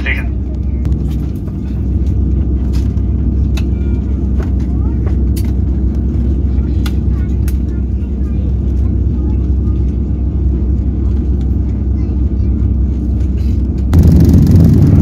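Jet engines hum steadily inside a plane cabin.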